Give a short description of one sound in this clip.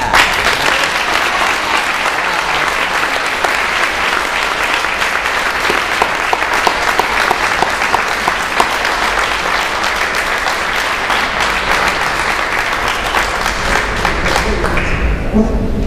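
An audience claps and applauds in an echoing hall.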